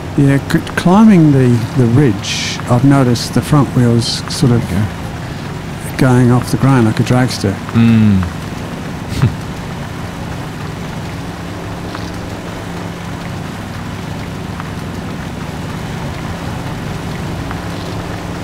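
A truck engine drones steadily at low revs.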